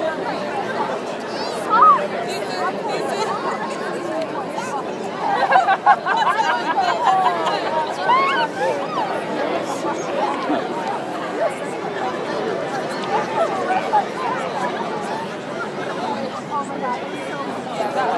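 A large flock of birds chirps and twitters overhead.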